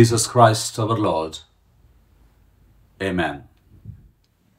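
An older man speaks calmly and closely into a microphone, in short phrases.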